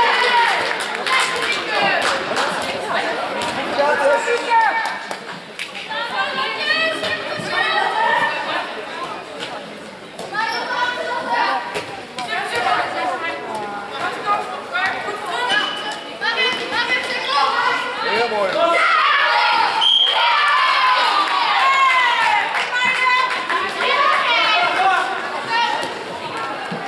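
Girls shout and call out to each other in a large echoing hall.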